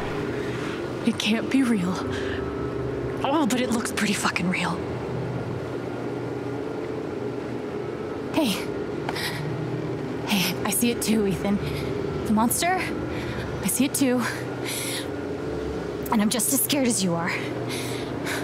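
A young woman speaks softly and anxiously up close.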